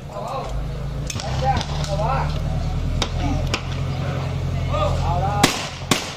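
A shotgun clicks as it is broken open and reloaded.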